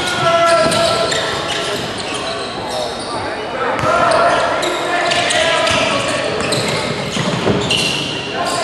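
Players shout to each other across a large echoing gym.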